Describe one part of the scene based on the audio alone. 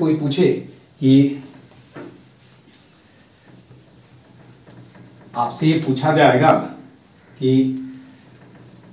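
A man speaks in short bursts, explaining with animation.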